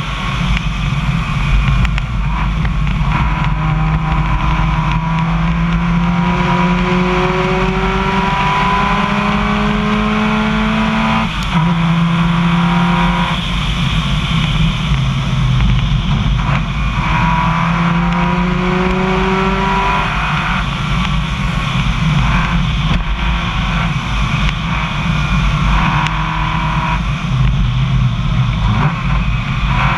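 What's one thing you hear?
A car engine drones and rises in pitch as it speeds up, again and again.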